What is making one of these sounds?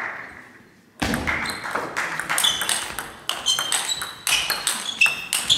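A table tennis ball clicks back and forth off paddles and the table in a rally.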